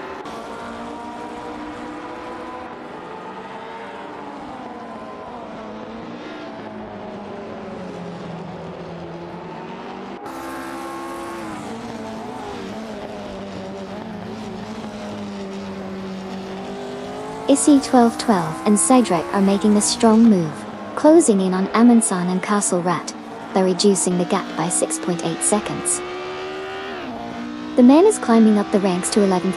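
Racing car engines whine and rev, shifting pitch up and down.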